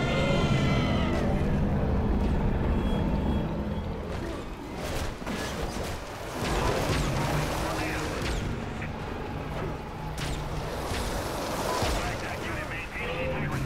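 Heavy blows and crashes thud and smash again and again.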